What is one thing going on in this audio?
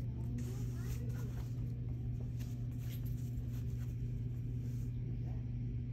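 A hand brushes and rustles against rolls of fabric.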